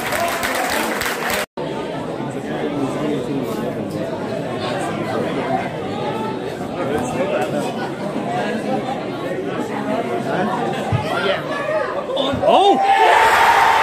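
A crowd murmurs and calls out at an outdoor match.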